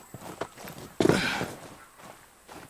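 A heavy thud lands on the ground.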